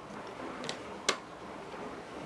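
A small wooden coaster clacks down onto a wooden table.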